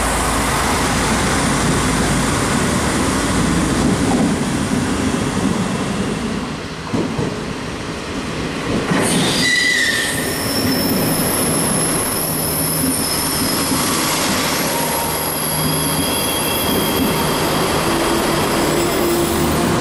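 A passenger train rumbles past on the tracks.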